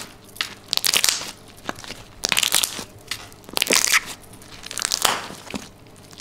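Hands knead and squish soft dough against a hard surface in repeated bursts.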